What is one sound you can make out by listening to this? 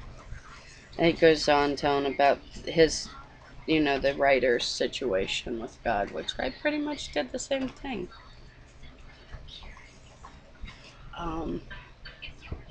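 A woman speaks casually, close to the microphone.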